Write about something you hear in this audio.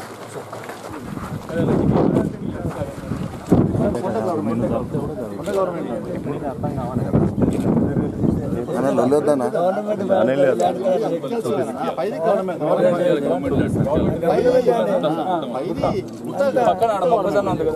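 A crowd of men murmurs and talks outdoors.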